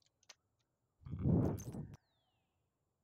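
A low whooshing menu sound swells and cuts off.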